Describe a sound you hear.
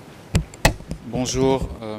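A man speaks formally through a microphone in a large hall.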